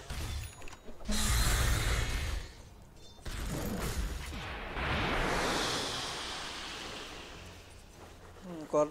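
Magic spells burst and whoosh in a battle.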